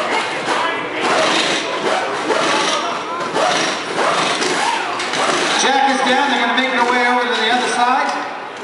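A crowd of men and women chatters loudly nearby.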